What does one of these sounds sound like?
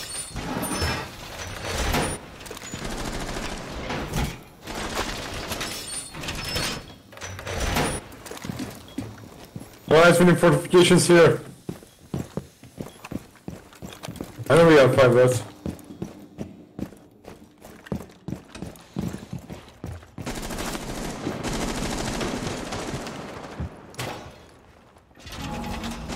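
Heavy metal panels clank and scrape as they are fixed into place.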